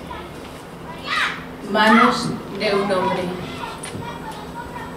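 A young woman reads aloud into a microphone.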